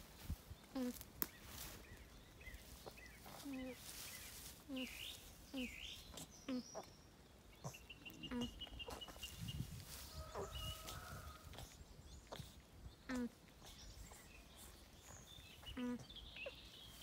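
An alpaca hums softly in short, repeated calls.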